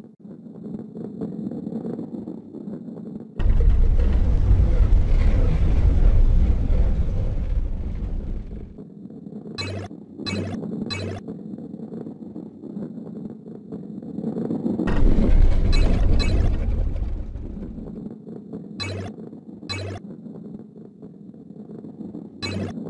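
A heavy ball rolls along a wooden track with a low rumble.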